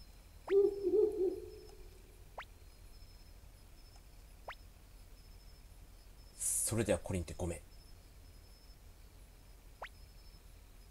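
A short electronic blip sounds now and then as game text advances.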